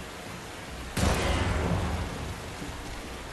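A rifle fires a single loud, booming shot that rumbles away.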